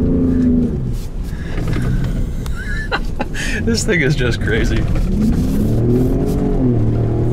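A truck engine roars and revs up and down.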